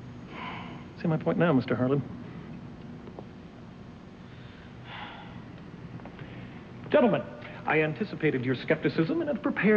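A man speaks firmly close by.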